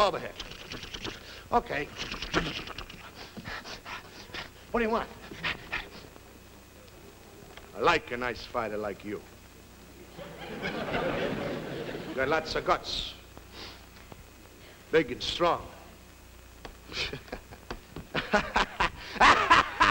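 A man speaks with animation, heard through an old broadcast.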